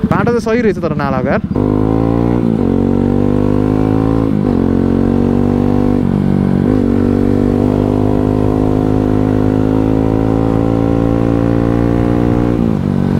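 A motorcycle engine revs up sharply and then drones steadily, dipping briefly at each gear change.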